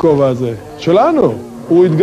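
A camel groans loudly.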